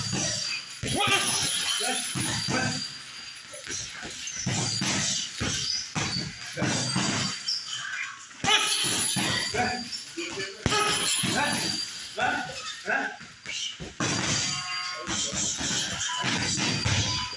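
Punches thud against a heavy punching bag.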